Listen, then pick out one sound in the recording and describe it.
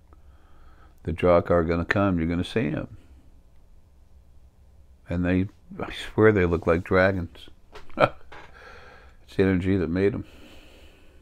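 An older man speaks calmly into a close microphone, with pauses.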